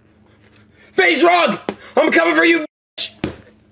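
A young man shouts loudly and fiercely close by.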